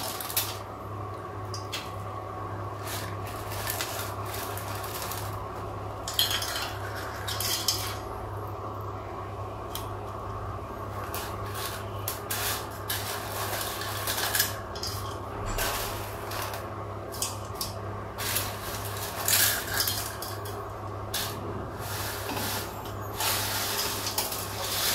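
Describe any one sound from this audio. A gas burner hums steadily.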